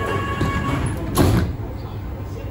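Sliding doors shut with a thud.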